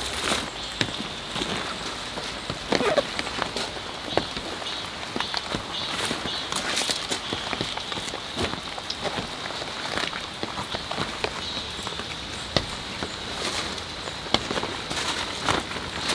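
Plastic sheeting rustles and crinkles as it is handled.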